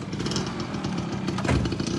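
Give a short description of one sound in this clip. A motorcycle rides past.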